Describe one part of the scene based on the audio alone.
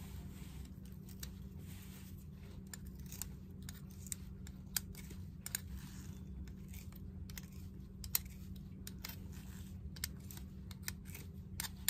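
Metal pliers scrape and click against a soldering iron tip.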